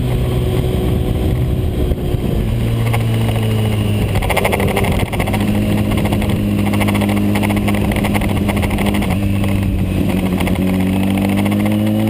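A motorcycle engine roars steadily, shifting gears as it speeds up.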